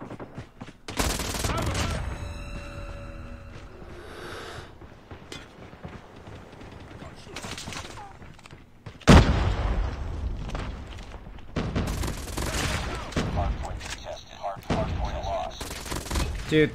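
Rapid gunfire bursts from a video game.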